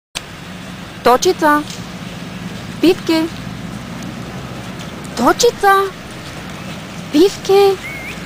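A small dog yelps in short, high, rising cries.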